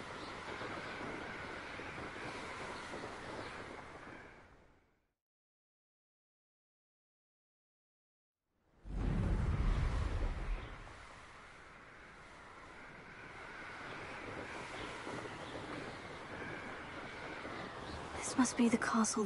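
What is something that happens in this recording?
Wind rushes steadily past a flying rider.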